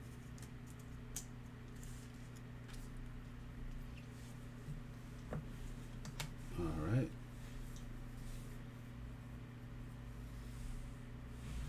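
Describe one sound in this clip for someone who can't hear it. Trading cards click and rustle as hands handle them.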